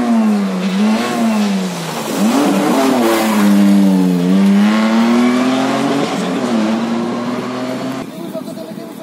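A rally car engine revs hard, shifting gears as it races past close by.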